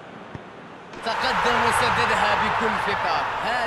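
A stadium crowd bursts into a loud roar.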